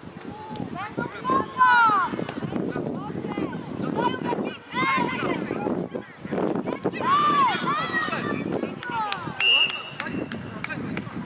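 Young girls scream excitedly in the distance.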